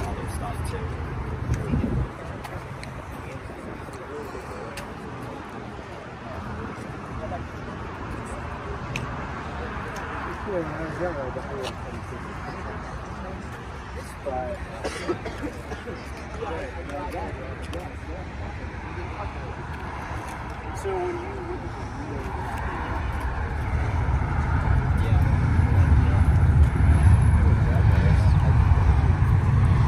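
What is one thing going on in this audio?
A crowd of people chat in the distance outdoors.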